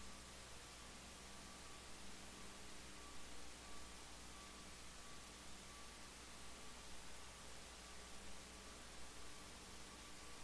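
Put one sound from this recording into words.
A man speaks faintly and distantly through a loudspeaker in a large echoing hall.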